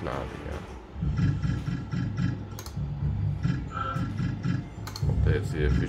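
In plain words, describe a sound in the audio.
Slot machine reels spin with quick ticking sounds.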